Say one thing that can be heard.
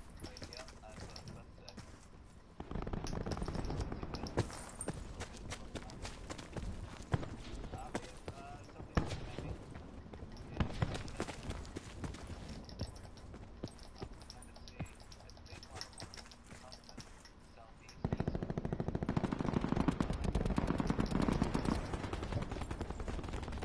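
Footsteps run quickly over rough ground and concrete.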